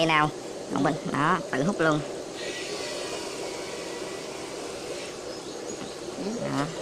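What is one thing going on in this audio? Water bubbles softly in an aquarium tank.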